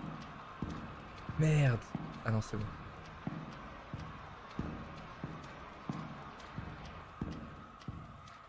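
Footsteps thud slowly and evenly on a hard floor.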